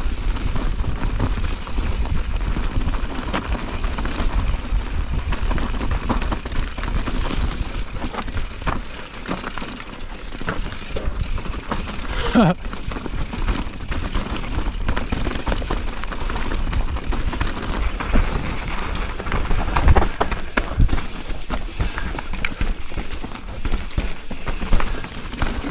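A bicycle frame and chain rattle over bumps.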